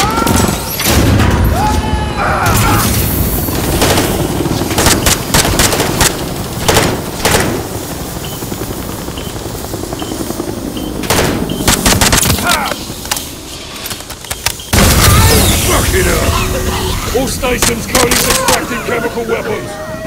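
Rapid gunshots ring out and echo in a large hall.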